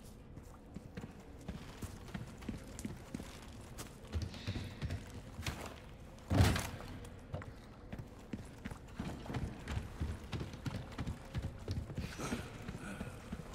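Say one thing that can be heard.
Footsteps crunch steadily over rough ground.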